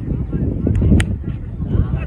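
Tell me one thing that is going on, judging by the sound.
A bat cracks against a cricket ball.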